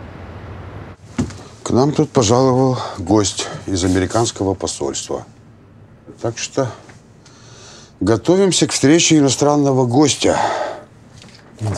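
A middle-aged man speaks firmly and loudly, close by.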